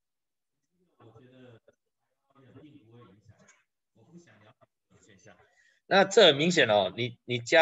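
A man talks calmly into a microphone, in short phrases with pauses.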